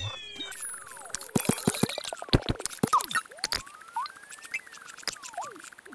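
Bright chiming blips sound as small items are collected.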